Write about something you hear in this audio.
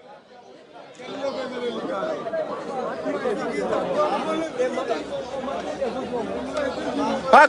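A large crowd of people chatters and shouts outdoors.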